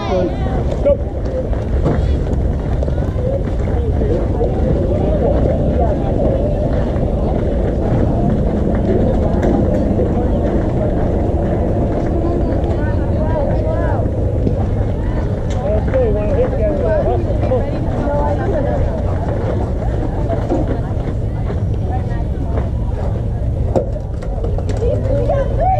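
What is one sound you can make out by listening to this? Young players call out and chatter across an open field outdoors.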